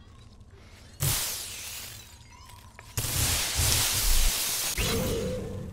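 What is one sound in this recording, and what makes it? Glass shatters loudly in bursts.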